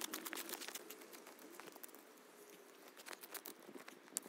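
A person scrapes snow and brush with a shovel.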